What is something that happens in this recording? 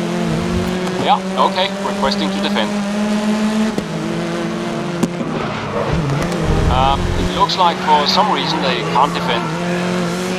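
Car tyres squeal through a corner.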